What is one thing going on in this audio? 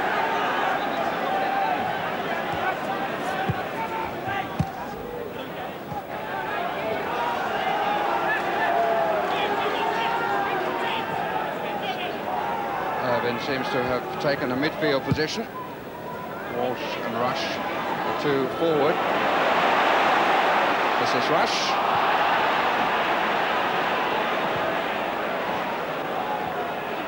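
A large football crowd chants and murmurs in a stadium, then swells into a roar.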